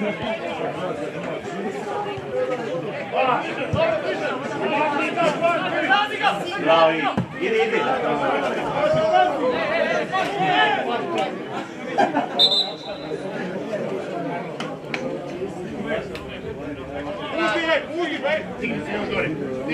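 Men and women nearby chatter and call out outdoors.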